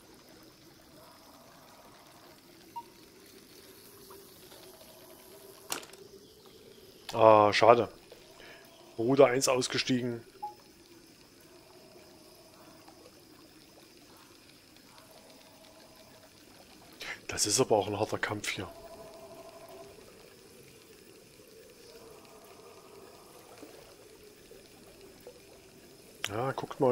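Calm water laps gently at the shore.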